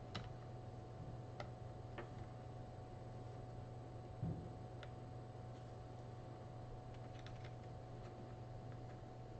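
Small plastic parts click and snap as hands fit them together.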